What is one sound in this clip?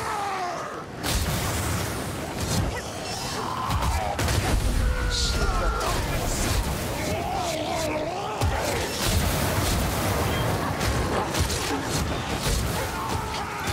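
Weapons slash and thud against monsters in rapid, busy combat.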